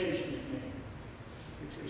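A man speaks calmly in a large, echoing room.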